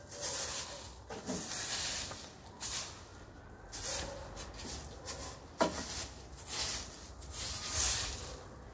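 A broom sweeps in quick, scratchy strokes across the ground outdoors.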